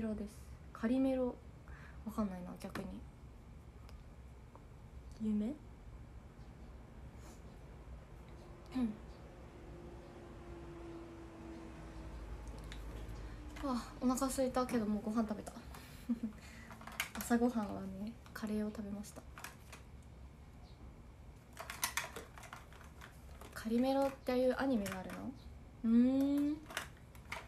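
A young woman talks softly and calmly close by, in short bursts.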